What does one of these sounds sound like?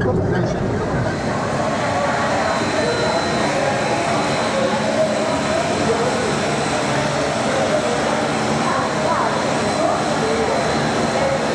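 A propeller plane's engines drone steadily nearby.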